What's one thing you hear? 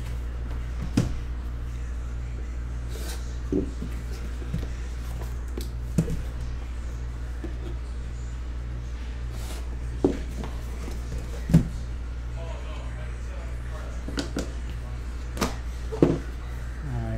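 Hands knock and tap against a metal case.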